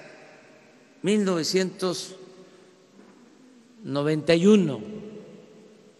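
An elderly man speaks slowly and deliberately into a microphone, with pauses.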